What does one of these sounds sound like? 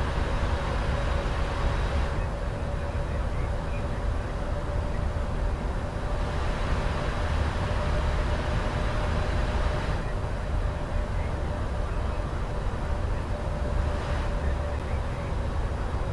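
Wind rushes steadily past the aircraft.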